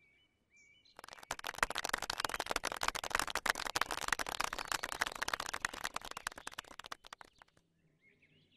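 A crowd applauds with steady clapping.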